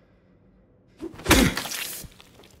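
A heavy blow lands with a loud, wet thud.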